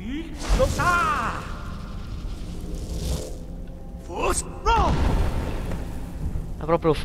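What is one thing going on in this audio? A magical blast roars and whooshes through an echoing hall.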